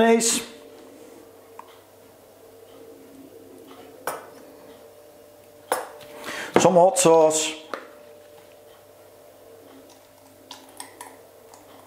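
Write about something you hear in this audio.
A squeeze bottle squirts sauce onto food.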